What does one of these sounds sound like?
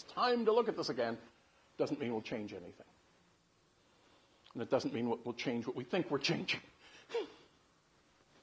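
An older man speaks with animation to a small audience, his words coming in bursts with pauses.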